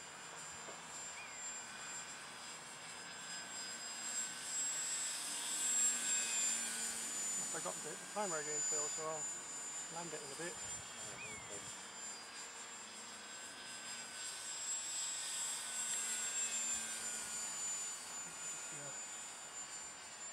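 A small propeller plane drones overhead, its engine whining louder and softer as it turns.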